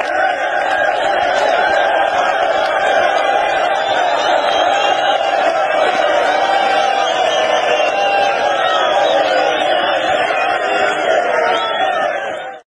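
A large crowd sings and chants loudly together outdoors.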